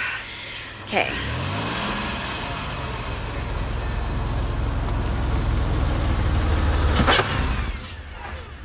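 A car engine runs and rumbles as the car pulls up.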